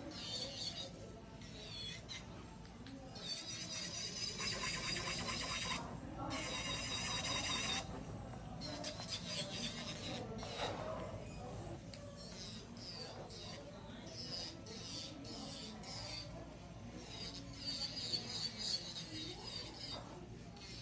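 An electric nail drill whirs in high, wavering bursts.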